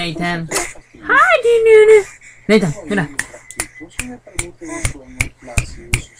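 A woman talks to a baby in a high, sing-song voice close by.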